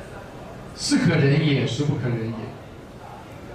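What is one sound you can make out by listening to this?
A middle-aged man speaks calmly into a microphone in an echoing room.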